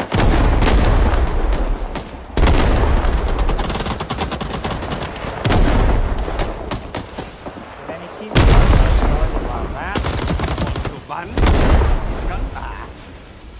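A rifle fires loud booming shots that echo away.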